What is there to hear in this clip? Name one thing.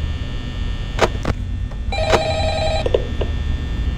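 A monitor flips up and down with a clatter.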